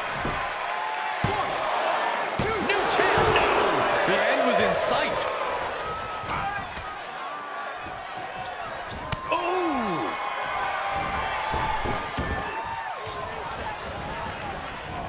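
Bodies slam onto a wrestling ring mat with a thud.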